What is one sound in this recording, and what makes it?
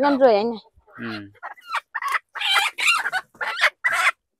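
A chicken squawks and clucks.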